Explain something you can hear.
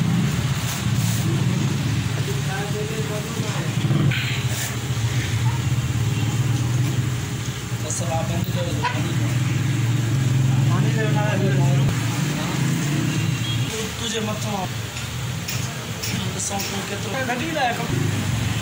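Plastic cord rustles and taps as it is woven by hand.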